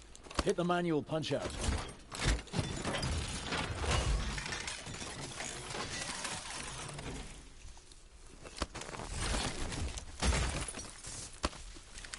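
Heavy metal parts clank and thud.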